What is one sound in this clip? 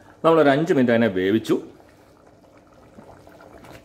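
A wooden spatula stirs a thick sauce in a metal pot.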